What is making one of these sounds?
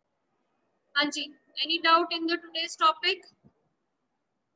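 A girl speaks calmly through an online call.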